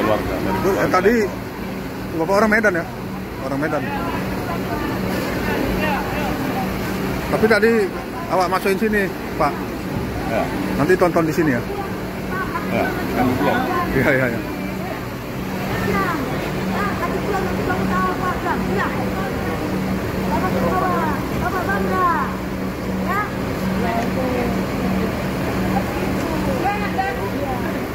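People chatter in the background.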